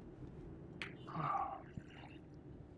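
A man sighs heavily close by.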